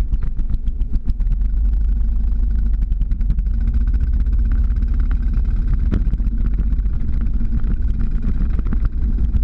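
Wheels roll and rattle over a paved road.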